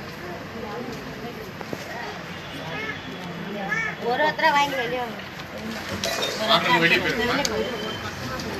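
Several men talk over one another nearby.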